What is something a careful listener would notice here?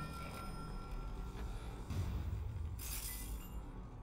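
A heavy chest lid creaks open.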